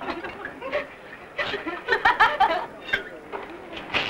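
Young women chat and laugh.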